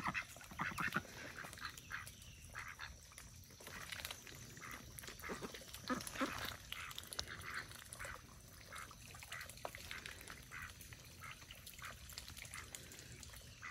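Ducks dabble and peck in the dirt.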